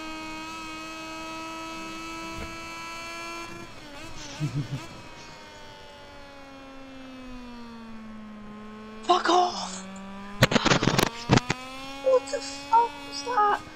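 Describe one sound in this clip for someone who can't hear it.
A motorcycle engine revs high and steady, then drops in pitch as the bike slows into a bend.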